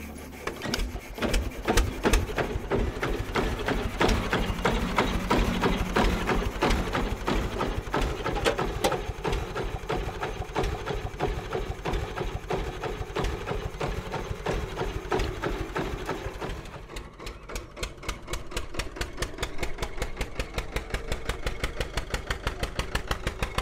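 An old tractor engine chugs and putters steadily outdoors.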